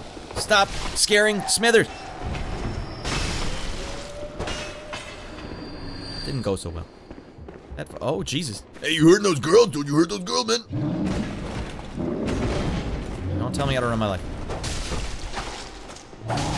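Sword strikes clang and slash.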